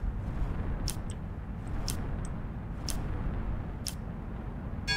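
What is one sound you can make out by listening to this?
A countdown ticks once each second.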